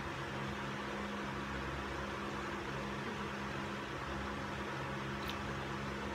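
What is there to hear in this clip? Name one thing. A young woman gulps down a drink.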